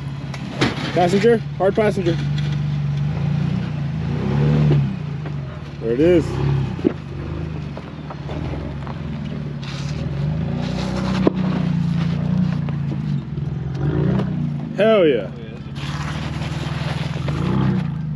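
Tyres crunch and grind over snow and rocks.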